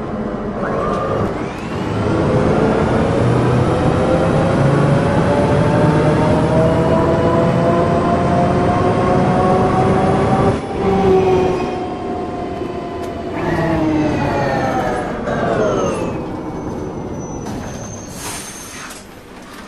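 A bus engine hums and rises in pitch as the bus speeds up, then winds down as it slows.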